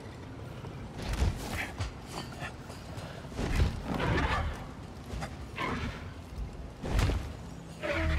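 A game character climbs a metal grate with clanging knocks.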